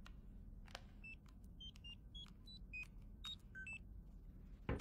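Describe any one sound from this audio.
Electronic buttons beep in a quick run of short tones at different pitches.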